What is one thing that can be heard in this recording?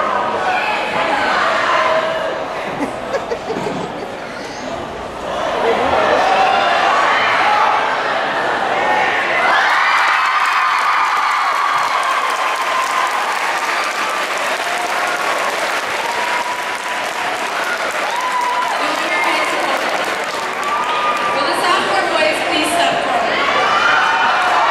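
A crowd of teenagers chatters and cheers loudly in a large echoing hall.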